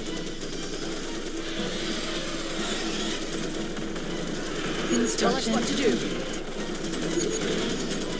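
Game battle noises rattle and clatter steadily.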